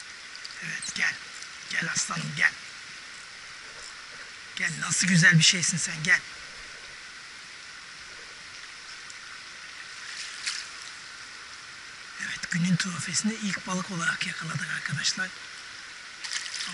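Shallow stream water flows and ripples steadily.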